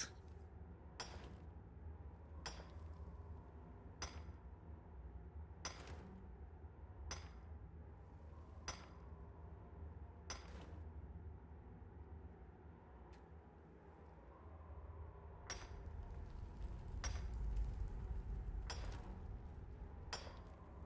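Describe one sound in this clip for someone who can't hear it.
A pickaxe strikes rock in a steady rhythm, each blow ringing briefly.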